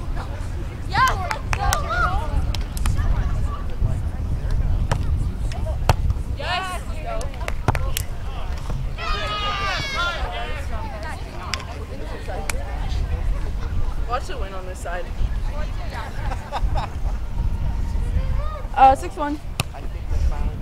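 Young women call out and talk to each other nearby.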